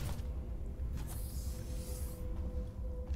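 A heavy sliding door hisses open.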